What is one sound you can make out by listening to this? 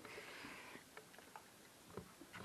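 A metal hook clicks lightly against a wall close by.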